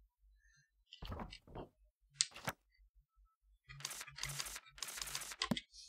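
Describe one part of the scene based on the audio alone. Paper pages flip with a soft rustle.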